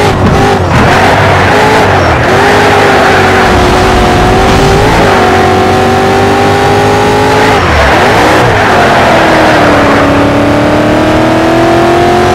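Tyres screech through the corners.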